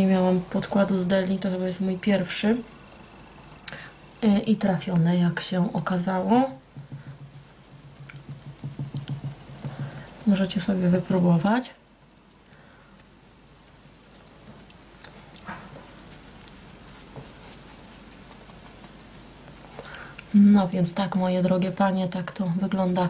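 A young woman talks calmly and close by.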